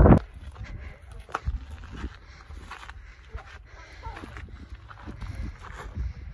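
Footsteps crunch on rocky gravel.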